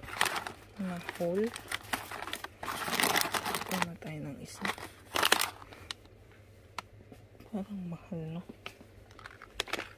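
A plastic packet crinkles as a hand handles it.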